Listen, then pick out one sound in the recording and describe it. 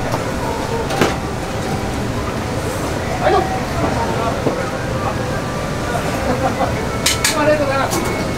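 Dishes clatter now and then.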